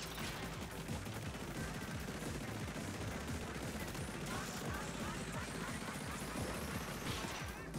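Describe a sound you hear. A video game character's ink weapon sprays in rapid bursts.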